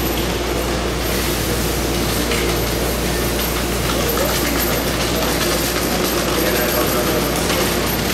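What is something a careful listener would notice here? A subway train hums steadily while it stands at an echoing underground platform.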